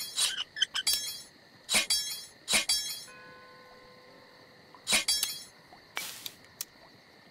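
Metal objects clink and rattle onto a wooden surface, one burst after another.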